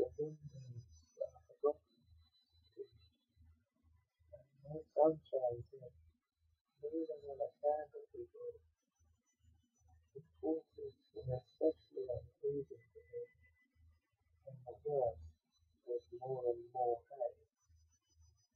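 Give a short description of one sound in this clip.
A young man reads aloud quietly, close by, in bursts with pauses.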